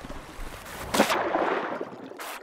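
A ball splashes into water.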